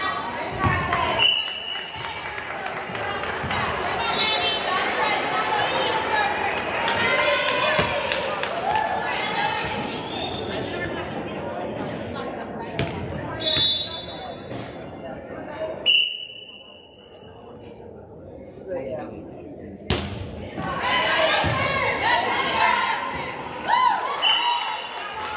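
Girls chatter and call out across a large echoing gym.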